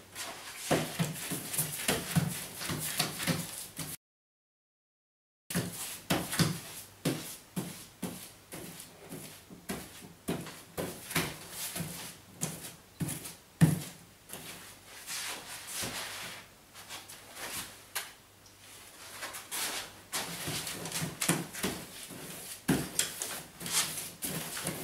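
A paste brush swishes across wallpaper.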